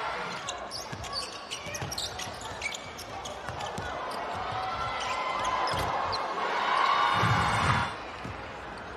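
A crowd in a large echoing hall murmurs and swells into loud cheering.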